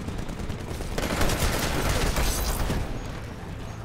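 A game rifle fires in rapid bursts.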